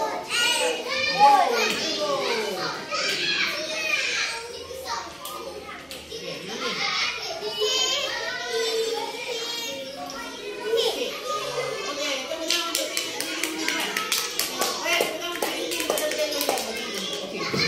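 Young children talk and answer.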